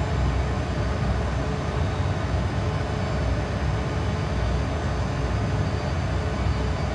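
Jet engines drone steadily with a deep, even roar.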